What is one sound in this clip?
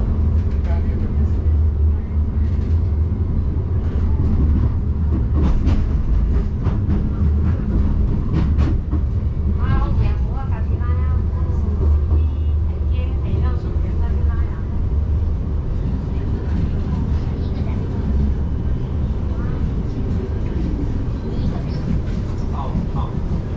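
A tram hums and rumbles steadily as it rolls along.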